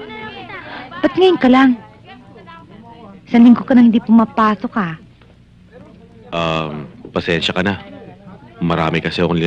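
A young woman speaks with emotion nearby.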